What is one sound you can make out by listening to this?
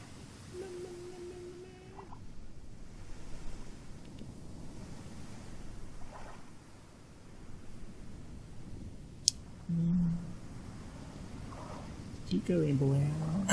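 An oar splashes and paddles through water.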